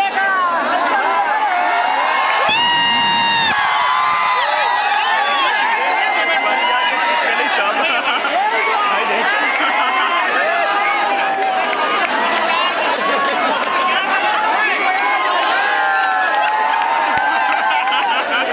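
A large crowd of young men shouts and cheers loudly outdoors.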